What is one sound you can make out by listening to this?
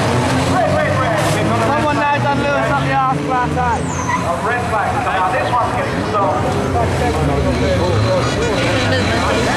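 Car engines roar and rev loudly nearby.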